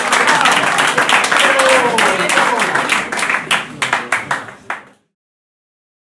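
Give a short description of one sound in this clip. A crowd claps and cheers in a room.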